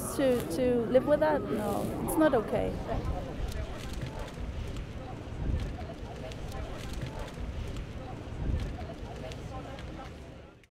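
A crowd of people murmurs and talks quietly outdoors.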